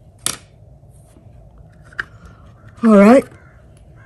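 A plastic paint box clicks shut.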